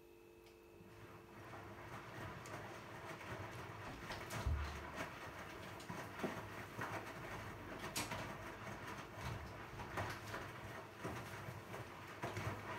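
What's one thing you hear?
Clothes tumble and thud inside a turning washing machine drum.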